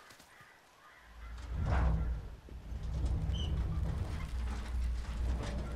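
A metal dumpster scrapes across the ground.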